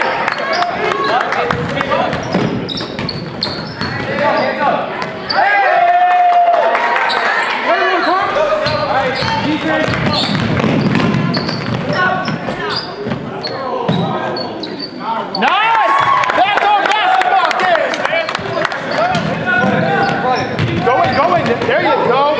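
Spectators call out and cheer, echoing in a large hall.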